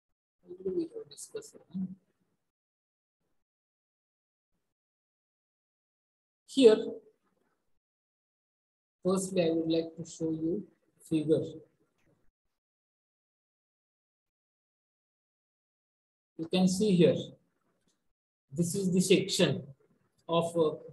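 A man lectures calmly into a microphone in short bursts with pauses.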